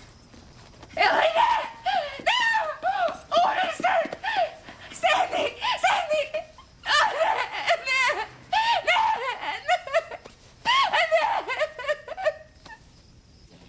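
A young woman screams in distress close by.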